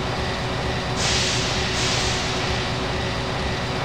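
Steam hisses out in sharp bursts.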